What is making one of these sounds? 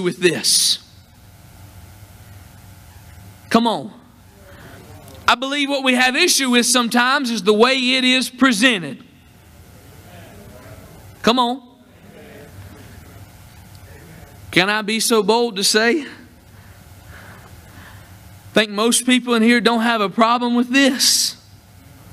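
A man preaches with animation through a microphone.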